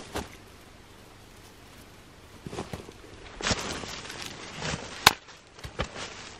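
Dry twigs snap and rustle as they are placed on a pile.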